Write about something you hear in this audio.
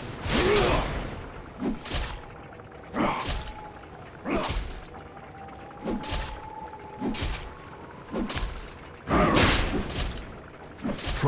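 Heavy weapon blows and whooshing effects clash again and again.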